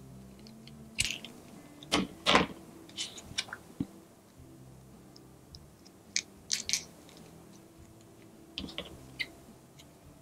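Scissors snip through tape with sharp clicks.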